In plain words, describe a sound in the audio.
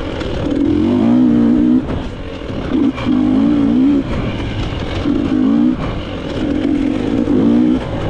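A dirt bike engine revs up and down in bursts close by.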